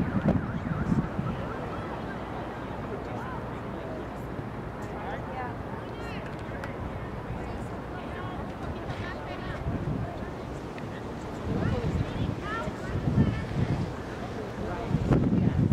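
Wind rumbles outdoors in gusts.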